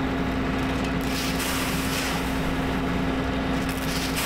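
A shovel scrapes and tosses grain.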